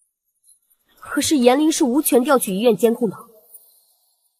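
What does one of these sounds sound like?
A young woman speaks firmly, close by.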